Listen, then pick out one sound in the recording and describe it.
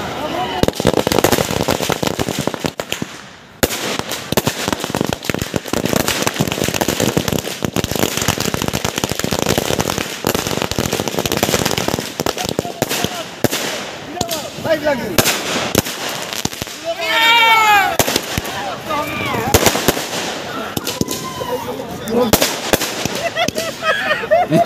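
Fireworks fountains crackle and hiss loudly nearby.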